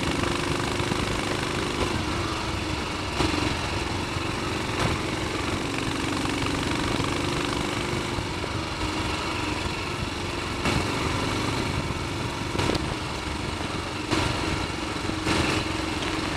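Wind buffets the rider's microphone.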